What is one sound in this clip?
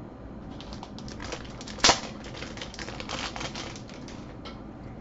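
Plastic card packs crinkle as they are handled.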